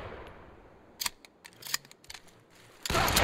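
Metal clicks and clacks as a rifle is handled.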